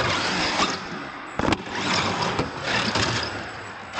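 Plastic wheels thud onto a hard floor.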